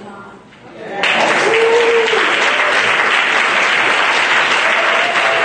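An audience claps steadily.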